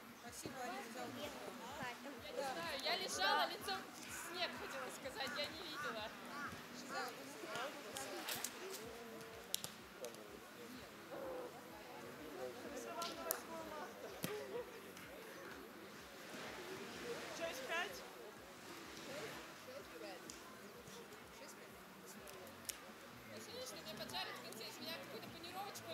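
Young women talk and call out to each other at a distance outdoors.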